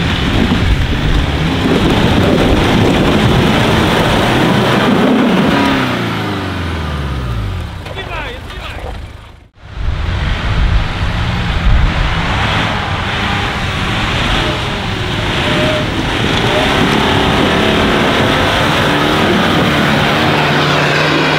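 A car engine revs and labours hard, close by.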